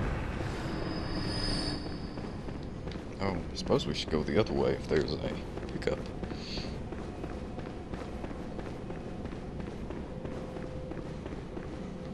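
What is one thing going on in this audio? Footsteps run across stone.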